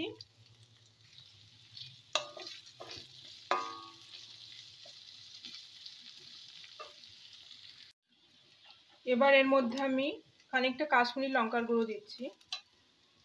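Food sizzles steadily in hot oil.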